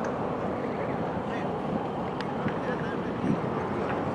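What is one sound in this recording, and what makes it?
Several men talk calmly nearby outdoors.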